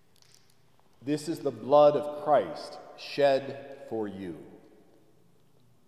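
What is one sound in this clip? A man chants in a clear singing voice, echoing in a large hall.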